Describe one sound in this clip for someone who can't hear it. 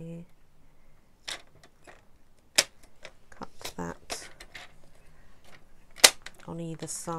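A paper trimmer blade slides along and slices through card.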